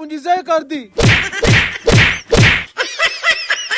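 Heavy punches thud loudly, one after another.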